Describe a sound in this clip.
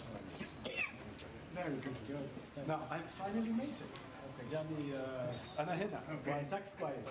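Two elderly men exchange warm greetings up close.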